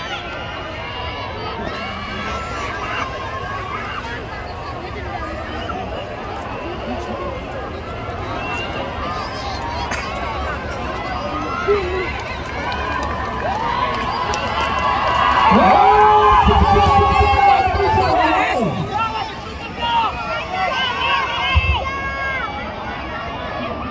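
A large crowd outdoors chatters and cheers, growing louder for a while.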